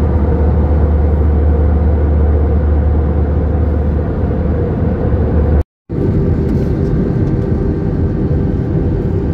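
Jet engines roar with a steady, low drone, heard from inside an airliner cabin.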